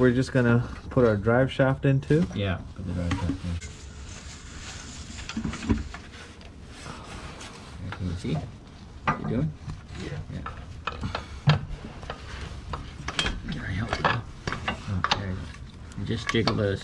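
Metal tools clink and tap against engine parts.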